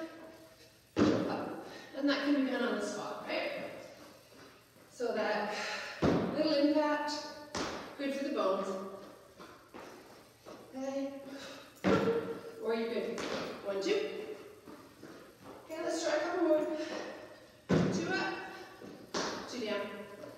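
Feet thump on a wooden step box.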